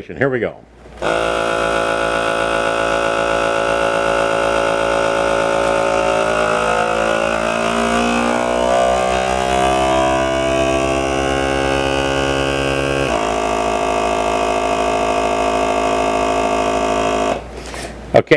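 A vacuum sealer pump hums loudly and steadily, its tone shifting as the air is drawn out.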